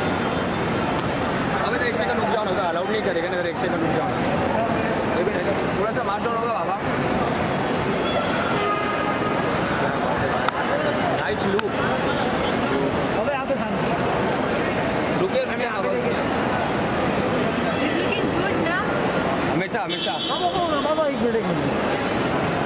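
Several men call out and shout nearby in a busy echoing hall.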